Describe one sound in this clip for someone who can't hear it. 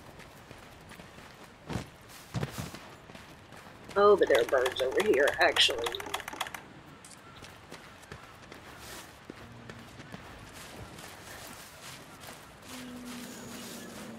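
Footsteps crunch softly on dirt and grass.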